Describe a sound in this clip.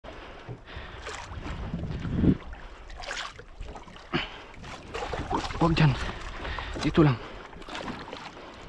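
Water splashes against the side of a boat.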